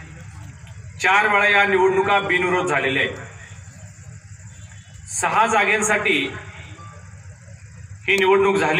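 A man speaks forcefully into a microphone over loudspeakers, in bursts with pauses.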